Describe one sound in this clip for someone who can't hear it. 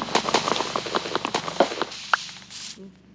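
Wood is chopped with rapid knocking thuds.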